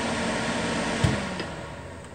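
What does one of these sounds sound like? A switch clicks.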